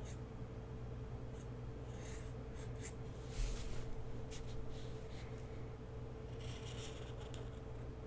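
A pencil scratches lightly on paper.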